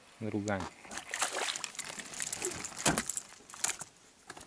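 A fish splashes and thrashes in the water.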